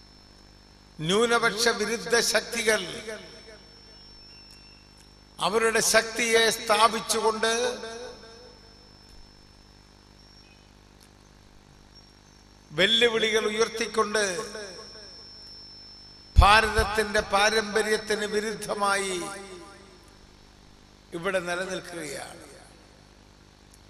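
An elderly man speaks forcefully in bursts through a microphone and loudspeakers, with pauses between phrases.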